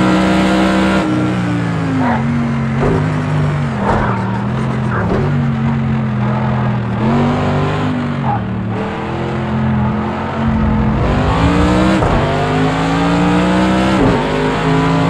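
A racing car engine drops in pitch as the gears shift down, then climbs again.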